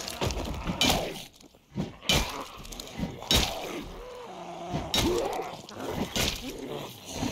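A heavy blunt weapon strikes a body with dull thuds.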